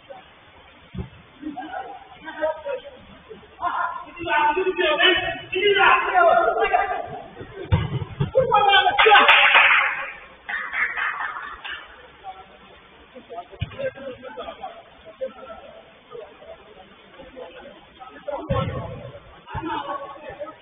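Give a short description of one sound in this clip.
A football thuds when kicked.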